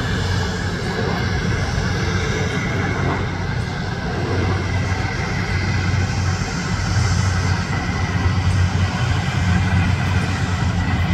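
A jet airliner's engines roar steadily as it lands and rolls down a runway.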